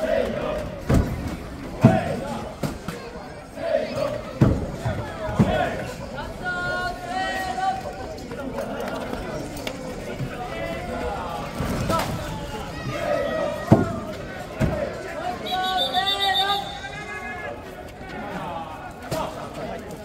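A crowd of men chant and shout together loudly outdoors.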